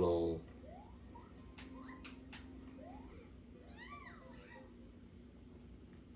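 Electronic video game sound effects chirp and bleep.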